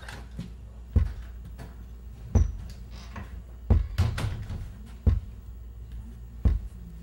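Slow, heavy footsteps thud on a hard floor, one at a time.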